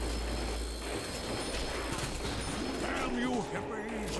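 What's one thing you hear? A zombie growls and groans up close.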